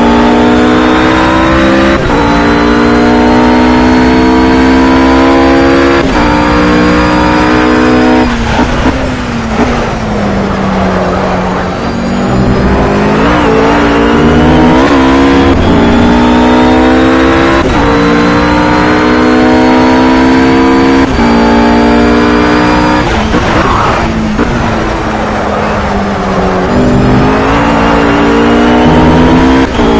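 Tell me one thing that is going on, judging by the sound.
A racing car engine roars at full throttle, climbing in pitch and shifting up through the gears.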